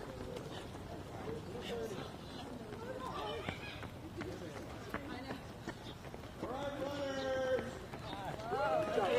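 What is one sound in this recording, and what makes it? Many running feet patter on pavement.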